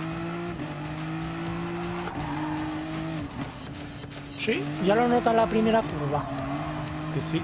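A race car engine roars at high speed, its pitch dropping briefly with each gear change.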